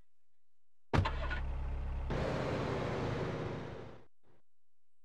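A car engine starts and runs, then stops.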